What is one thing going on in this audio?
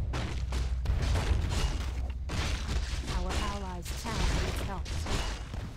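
Weapons clash and strike in a fierce battle.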